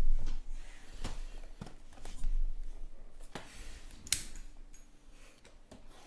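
Cardboard boxes tap and scrape as hands handle them up close.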